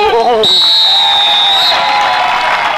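A referee's whistle blows a long, shrill blast.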